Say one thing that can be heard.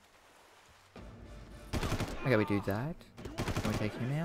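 A rifle fires a burst of shots.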